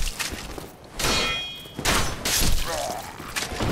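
Metal blades clash and strike armour.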